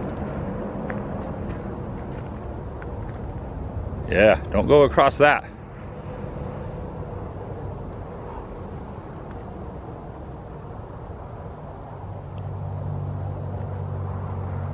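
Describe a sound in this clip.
Wind rumbles across open ground outdoors.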